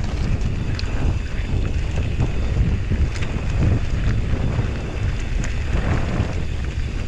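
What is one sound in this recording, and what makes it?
Wind rumbles steadily past.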